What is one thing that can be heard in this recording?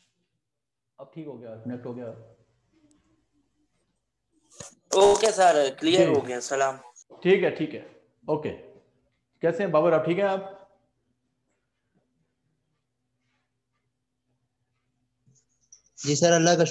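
A middle-aged man speaks loudly and with animation over an online call.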